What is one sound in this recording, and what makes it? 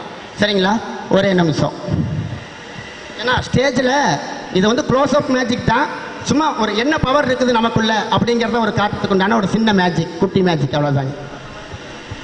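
A man sings with feeling into a microphone over loudspeakers in an echoing hall.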